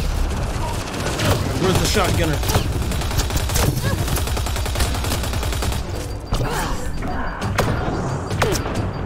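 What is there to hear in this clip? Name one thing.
Gunfire and explosions crack and boom in quick bursts.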